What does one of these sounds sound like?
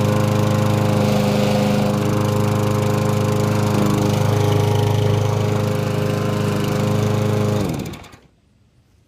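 A lawn mower engine runs loudly up close, then winds down and stops.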